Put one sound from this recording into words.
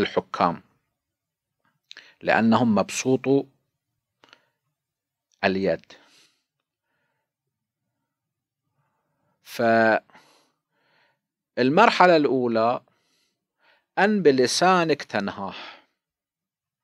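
A middle-aged man speaks calmly into a close microphone, with long pauses.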